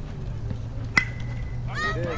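A metal bat pings sharply as it strikes a ball.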